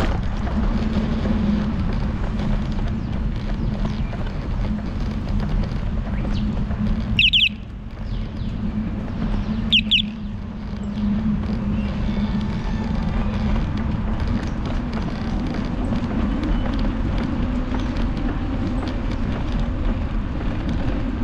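Wind buffets the microphone steadily while riding outdoors.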